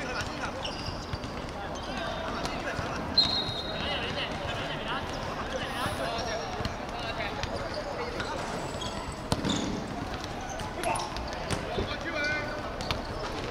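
Players' voices call out in the distance across an open outdoor pitch.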